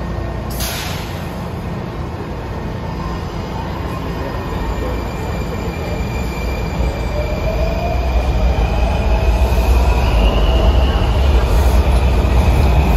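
A subway train rumbles as it pulls out of an underground station and speeds up.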